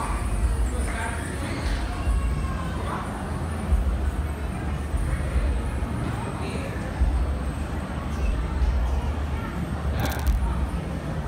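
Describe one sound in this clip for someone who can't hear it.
Music with a heavy thumping beat plays loudly over loudspeakers in a large echoing hall.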